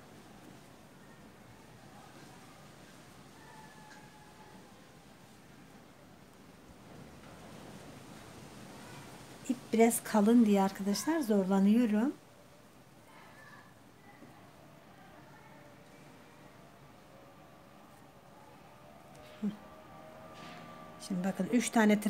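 A crochet hook softly pulls yarn through loops.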